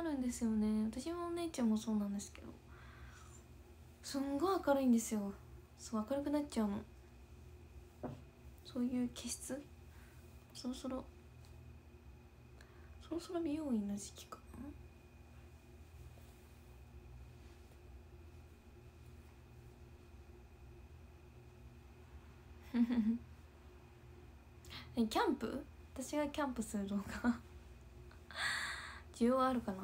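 A young woman talks casually and close to a microphone, in short bursts with pauses.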